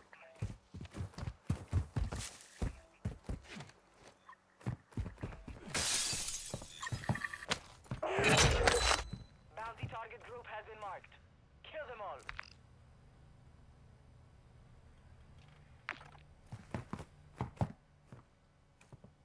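Footsteps thud quickly on hard ground and wooden floors.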